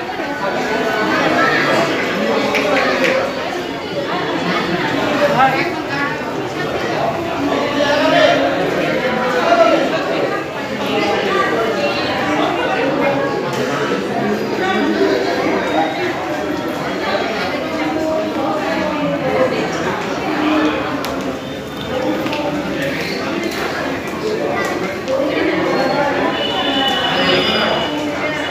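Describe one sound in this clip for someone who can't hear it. A crowd of men and women chatter nearby in an echoing indoor space.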